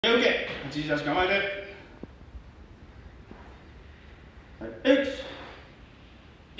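A middle-aged man speaks loudly and firmly in an echoing room.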